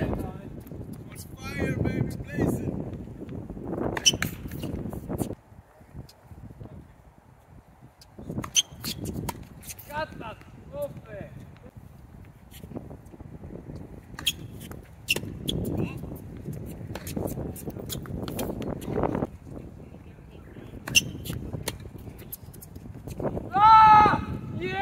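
Tennis rackets strike a ball back and forth with sharp pops.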